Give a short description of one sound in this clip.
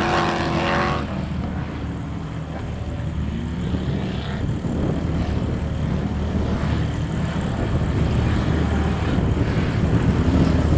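Engines drone more faintly in the distance outdoors.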